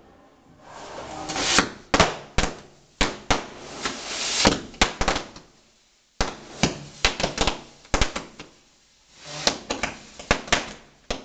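Firecrackers crackle and pop in sharp bursts on the ground.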